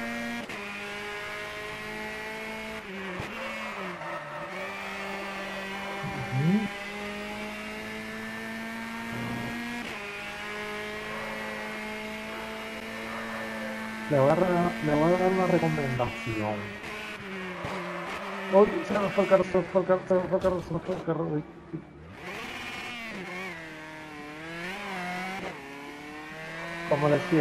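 A racing car engine whines steadily, rising and falling as the gears shift.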